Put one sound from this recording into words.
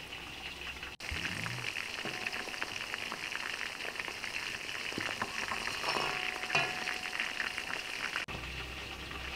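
Oil sizzles and crackles as food fries in a pot.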